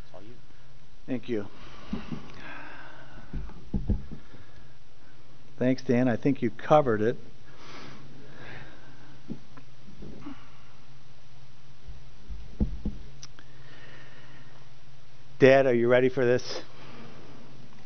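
An older man speaks calmly through a microphone in a large room, pausing between phrases.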